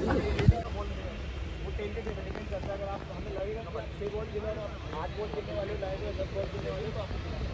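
Several men chat casually outdoors a few steps away.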